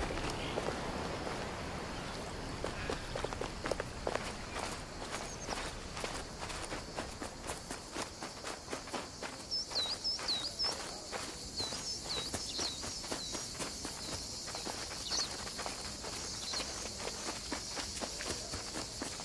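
Quick footsteps run on a dirt path.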